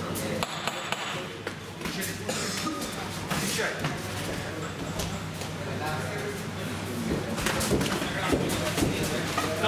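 Boxing gloves thud as punches land.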